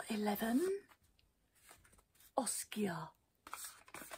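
A woman speaks softly and closely into a microphone.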